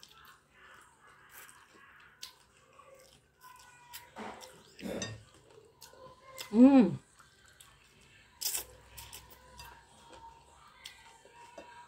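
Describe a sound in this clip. A woman chews food noisily up close.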